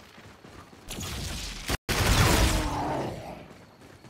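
A loud energy blast booms and roars.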